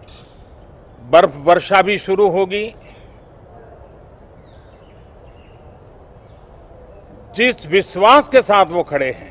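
An elderly man speaks calmly and deliberately into microphones close by.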